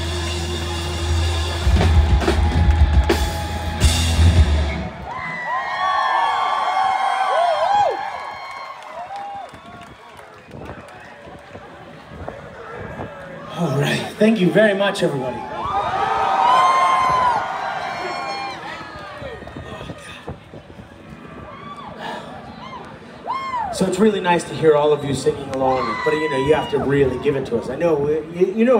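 A rock band plays loudly through loudspeakers outdoors.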